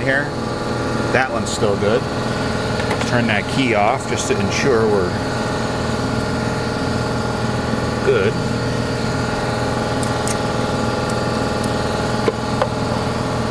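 Metal parts clink softly as a screwdriver works on a small engine.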